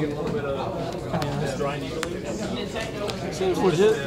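Playing cards slide and tap softly on a cloth mat.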